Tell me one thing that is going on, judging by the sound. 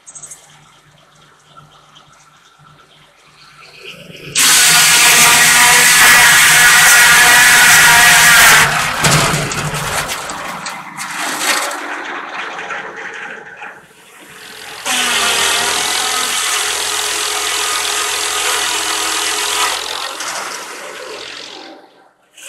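A large circular saw spins with a low whir.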